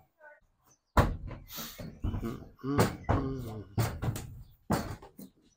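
Hooves clatter and thud on a hollow wooden ramp.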